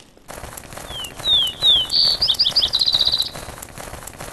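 A bird chirps in a quick series of high calls.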